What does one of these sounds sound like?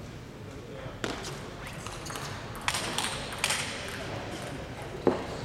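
A table tennis ball clicks sharply back and forth off paddles and the table in a quick rally, in a large echoing hall.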